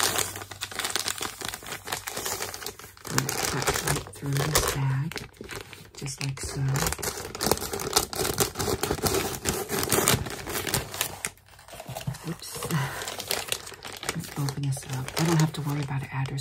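A plastic mailer bag crinkles and rustles.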